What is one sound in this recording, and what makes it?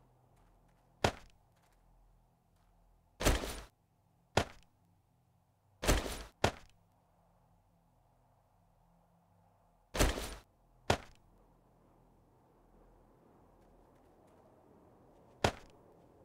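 Short item-handling clicks and shuffles from a game sound sharply now and then.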